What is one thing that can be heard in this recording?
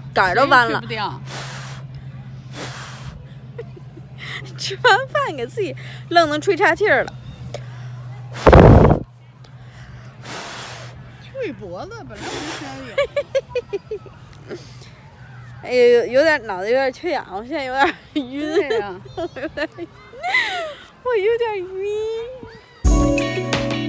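A young woman talks and laughs close to the microphone with animation.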